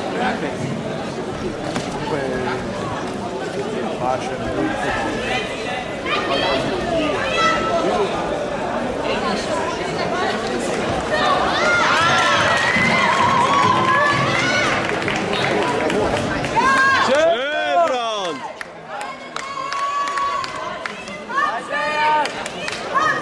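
A crowd in a large echoing hall shouts and cheers throughout.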